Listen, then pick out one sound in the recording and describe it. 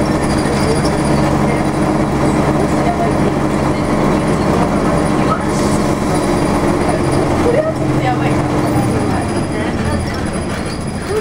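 Tyres roll steadily on a road with a low engine hum, heard from inside a moving vehicle.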